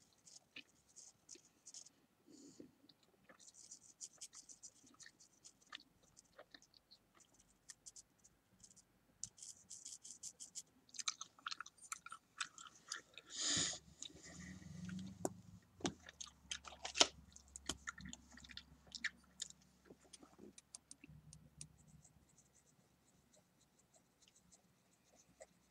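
A small paintbrush dabs and scratches softly on a figure.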